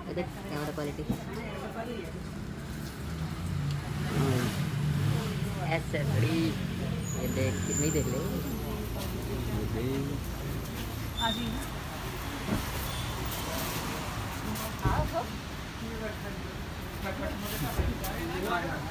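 Several adults talk nearby in a lively, overlapping way.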